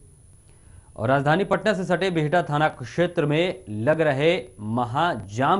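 A young man speaks clearly into a microphone, like a presenter reading out news.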